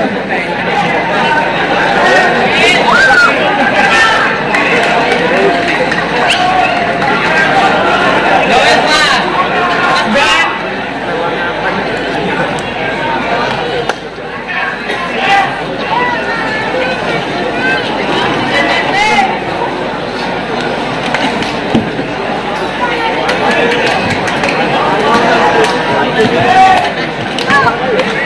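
A large crowd cheers and chatters loudly outdoors.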